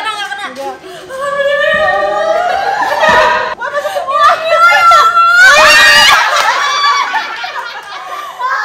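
A young woman squeals and shouts excitedly close by.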